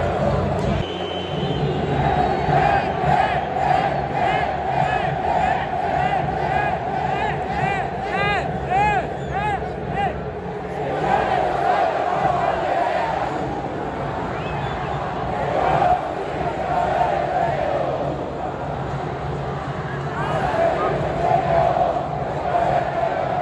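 A large stadium crowd chants and sings loudly throughout.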